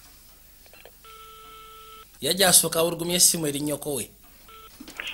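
A phone line rings faintly through an earpiece.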